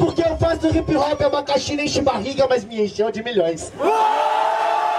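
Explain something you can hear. A young man raps fast into a microphone over a loudspeaker.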